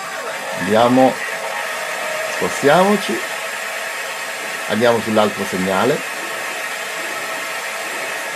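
Radio static hisses steadily through a loudspeaker.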